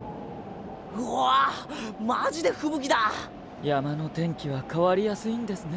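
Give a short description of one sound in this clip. A young man speaks with surprise.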